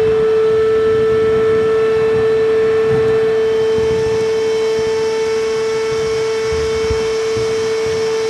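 A vacuum cleaner hums steadily as it sucks up debris through a hose.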